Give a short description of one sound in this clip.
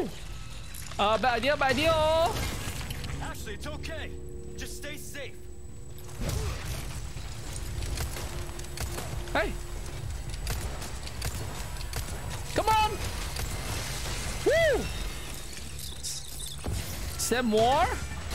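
A young man talks excitedly into a microphone.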